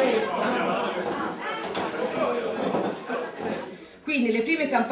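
Many young people chatter and talk over each other in a room.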